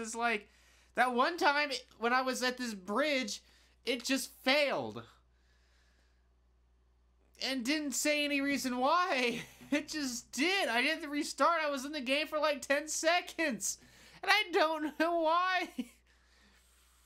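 A man talks with animation into a close microphone, with pauses.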